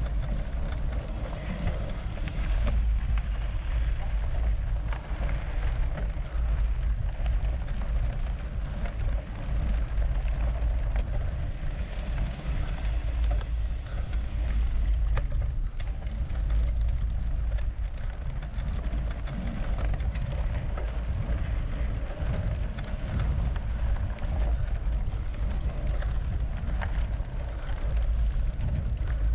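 Wind rumbles against a microphone, loud and steady.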